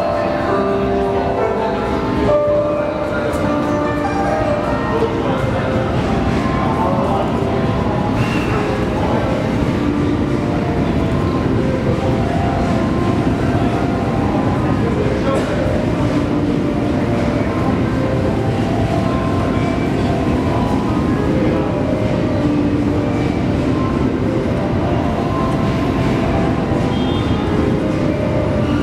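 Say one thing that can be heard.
A crowd murmurs on a platform.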